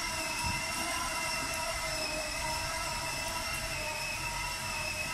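A small electric ride-on toy hums steadily as it rolls along a hard floor.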